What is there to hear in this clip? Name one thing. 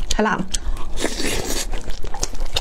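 A young woman slurps noodles loudly up close.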